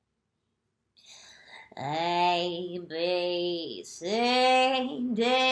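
A woman sings in a high, playful voice, with long drawn-out notes.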